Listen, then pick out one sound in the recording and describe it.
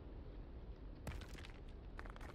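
Rocks clatter and knock as they drop onto hard ground.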